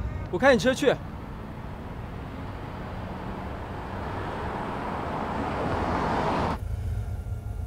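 A car approaches along a road and grows louder.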